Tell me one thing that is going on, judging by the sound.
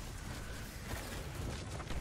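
Electric energy crackles and zaps.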